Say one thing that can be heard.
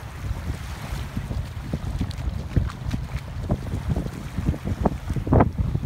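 Small waves lap and splash at the shore.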